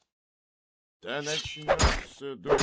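A sword swishes through the air.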